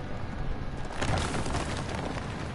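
Heavy footsteps splash and crunch through icy ground.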